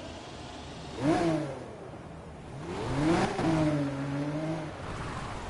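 A car engine revs up sharply.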